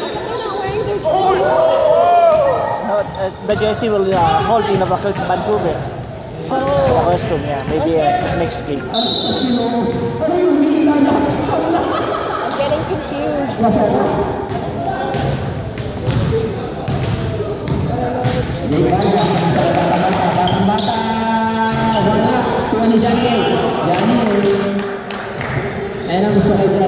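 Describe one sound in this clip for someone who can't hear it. Several men talk and call out in a large echoing gym.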